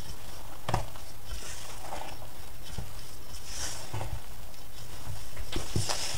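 A wooden spoon stirs flour into yeast dough in a metal bowl.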